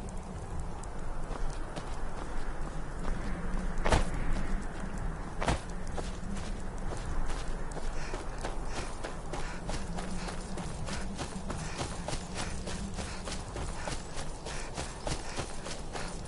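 Footsteps crunch steadily on grass and gravel.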